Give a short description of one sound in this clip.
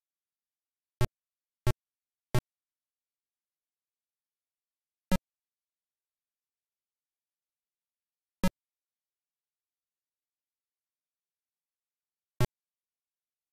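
Sharp single clicks sound from an old computer game, spaced several seconds apart.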